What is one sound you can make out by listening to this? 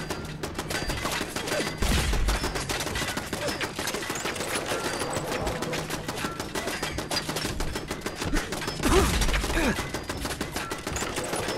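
Bullets clang against metal.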